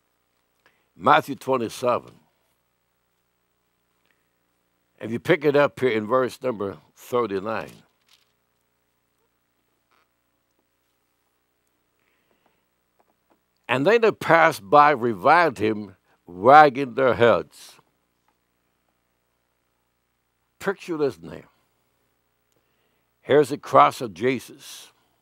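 An elderly man speaks slowly and deliberately into a microphone, with long pauses.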